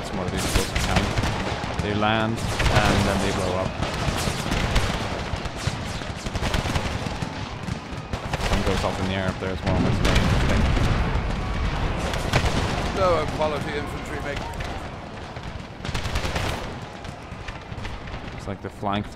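Muskets fire in ragged volleys from a distance.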